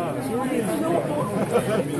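A young woman laughs near the microphone.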